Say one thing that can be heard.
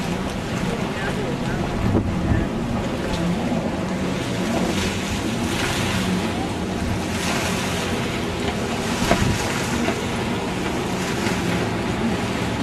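Jet skis roar across the water at a distance.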